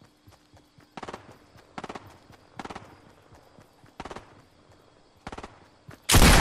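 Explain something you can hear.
Footsteps patter on grass at a steady pace.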